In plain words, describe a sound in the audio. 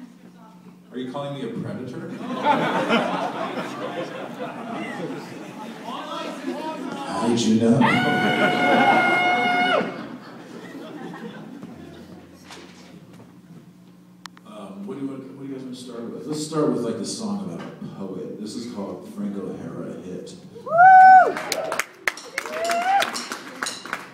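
A band plays live in a loud echoing room.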